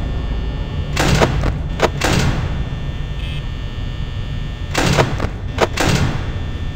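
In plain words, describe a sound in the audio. A monitor flips up with a burst of static hiss.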